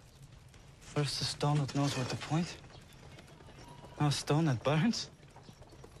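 A man speaks in a low, questioning voice.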